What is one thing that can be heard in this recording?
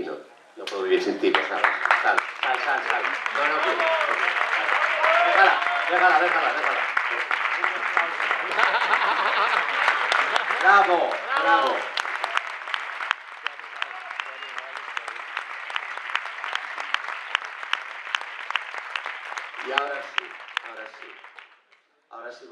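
People clap their hands steadily.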